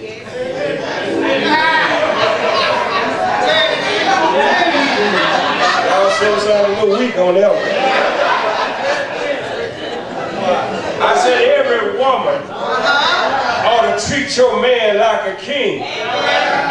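A man preaches with fervour through a microphone in an echoing hall.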